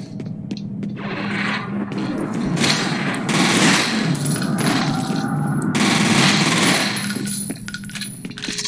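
A creature lets out harsh, raspy shrieks close by.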